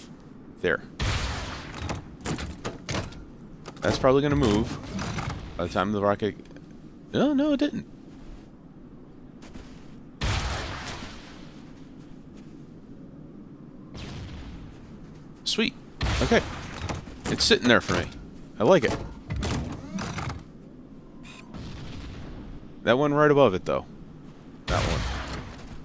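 Sniper rifle shots crack with a booming echo.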